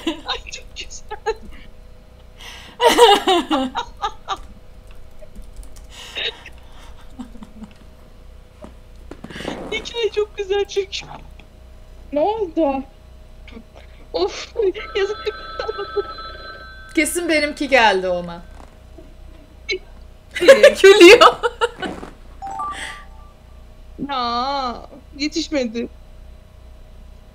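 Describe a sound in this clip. A young woman talks animatedly and laughs close to a microphone.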